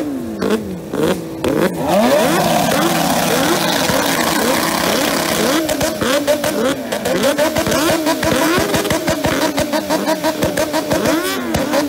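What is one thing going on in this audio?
A motorcycle engine revs hard over and over, its pitch climbing and falling.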